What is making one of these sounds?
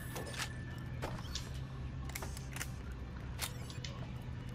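Short electronic chimes ring as items are picked up.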